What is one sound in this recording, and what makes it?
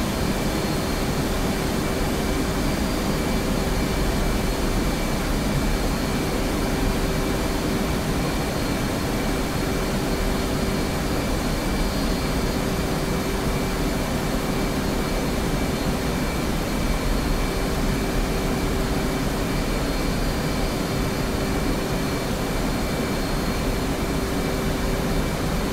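A jet engine roars steadily with a low rumble and a high whine.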